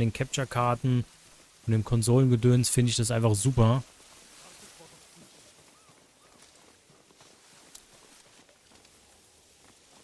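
Wind blows softly through tall grass outdoors.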